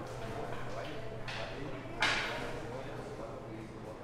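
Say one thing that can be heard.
A cue strikes a billiard ball.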